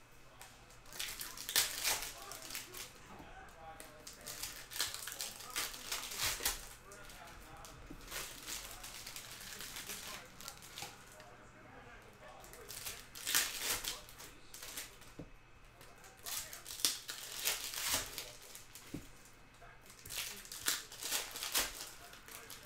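Foil wrappers tear open sharply.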